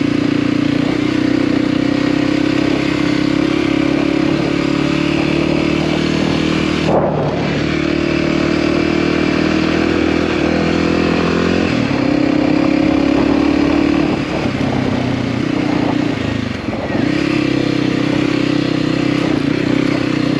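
Tyres crunch over a rough dirt track.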